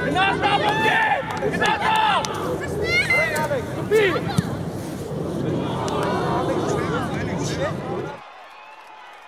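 Children shout excitedly across an open field.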